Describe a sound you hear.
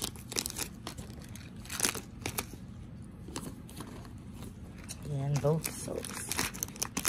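Plastic packages rustle and crinkle as a hand rummages through a small pouch.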